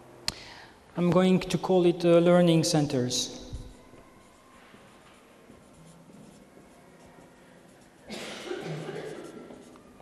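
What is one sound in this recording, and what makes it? A marker squeaks on paper.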